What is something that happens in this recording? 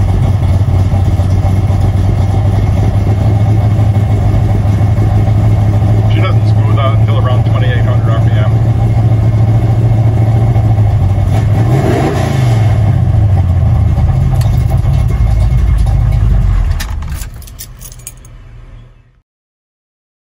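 An engine idles loudly and steadily, briefly revving up and settling back down.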